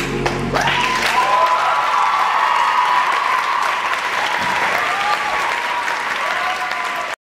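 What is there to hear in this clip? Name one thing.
A choir of young voices sings a long held note in an echoing hall.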